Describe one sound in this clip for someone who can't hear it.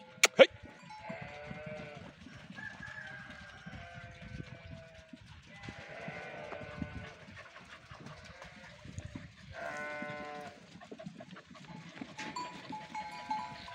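A flock of sheep bleats loudly and often.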